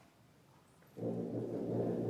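A concert band suddenly starts playing loudly in a large hall.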